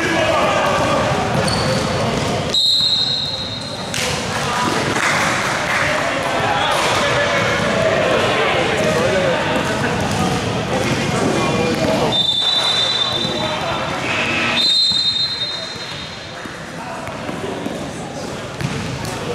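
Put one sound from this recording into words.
Young men shout and call out to each other across a court.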